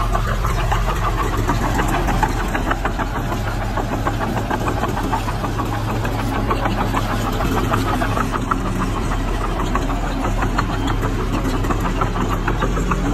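A diesel engine rumbles steadily.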